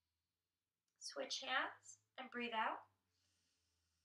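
A woman speaks calmly and softly, close by.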